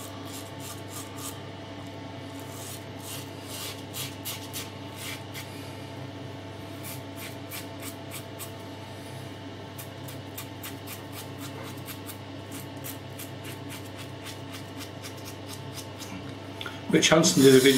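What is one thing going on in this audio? A razor scrapes through stubble with short rasping strokes.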